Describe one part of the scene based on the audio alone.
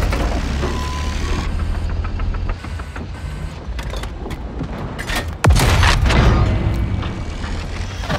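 A tank engine rumbles low and steadily.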